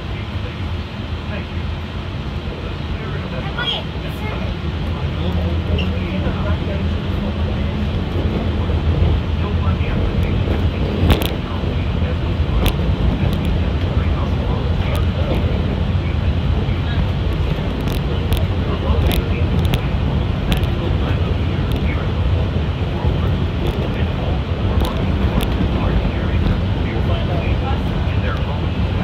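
Wind rushes and buffets outdoors.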